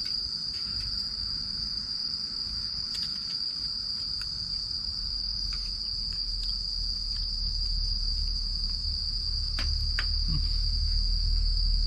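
A campfire crackles and pops nearby.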